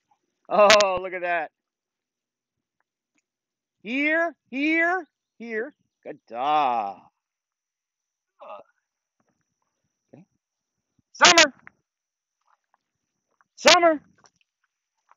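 A man calls out commands to a dog in short, lively bursts, a little way off outdoors.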